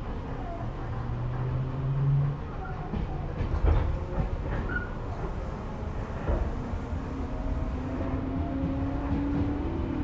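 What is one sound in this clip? Train brakes squeal faintly.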